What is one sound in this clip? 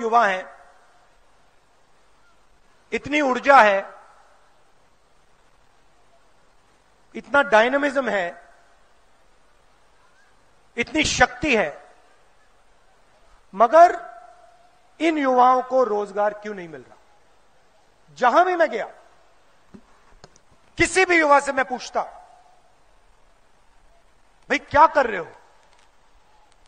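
A man speaks through a loudspeaker in short, slow phrases with long pauses, echoing outdoors.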